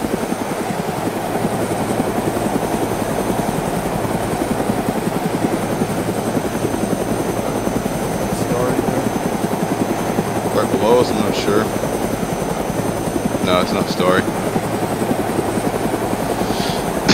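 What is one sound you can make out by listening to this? A Huey helicopter's rotor thumps in flight.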